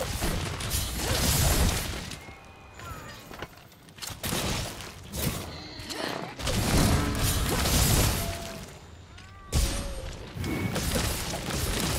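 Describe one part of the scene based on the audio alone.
Metal blades clash and grind against a huge creature's scales.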